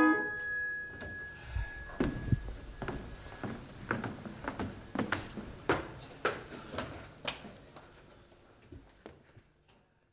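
Footsteps tap on a wooden stage and fade away.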